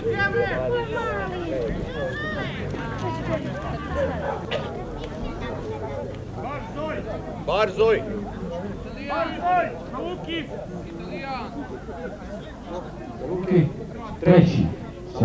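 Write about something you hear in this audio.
A crowd of men and women chatter outdoors nearby.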